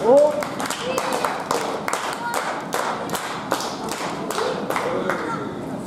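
A crowd claps in a steady rhythm in a large echoing hall.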